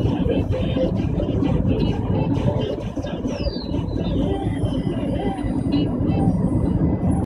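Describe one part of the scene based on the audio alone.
A car drives steadily along a road, heard from inside, with a low rumble from the engine and tyres.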